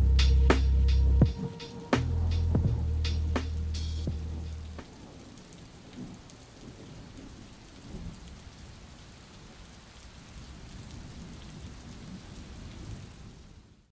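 Rain patters softly against a window pane.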